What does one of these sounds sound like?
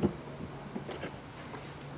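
A screwdriver turns a screw with faint ticks.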